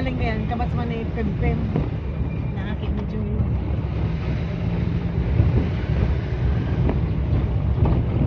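A vehicle engine rumbles steadily while driving slowly along a street.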